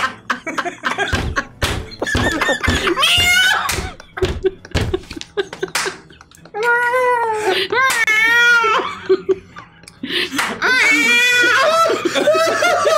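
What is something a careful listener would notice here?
Several men laugh loudly over an online call.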